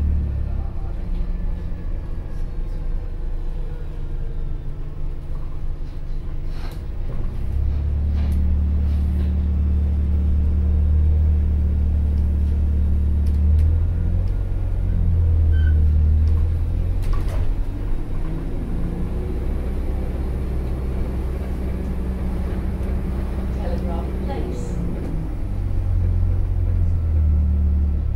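A bus engine hums and rumbles, growing louder as the bus pulls away.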